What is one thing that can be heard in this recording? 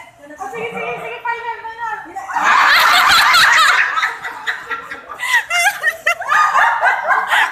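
A group of people sing a birthday song together nearby.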